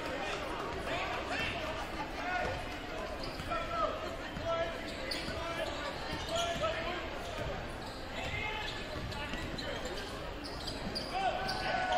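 Basketball shoes squeak sharply on the court floor.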